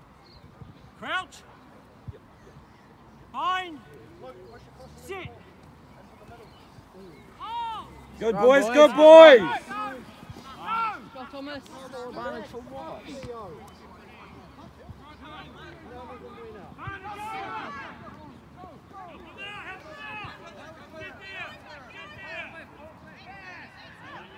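Young women shout calls to each other outdoors, some near and some far off.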